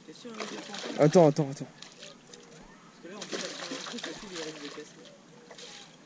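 A net splashes in the water.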